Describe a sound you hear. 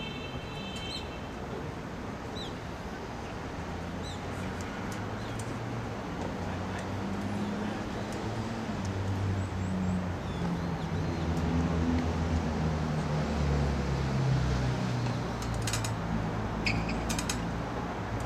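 Tennis balls are struck with rackets, with sharp pops at a distance, outdoors.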